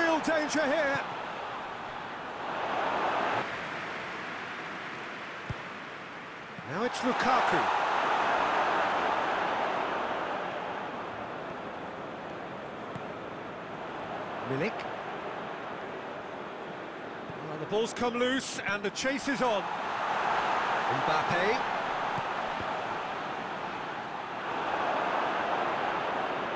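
A stadium crowd roars and murmurs in waves.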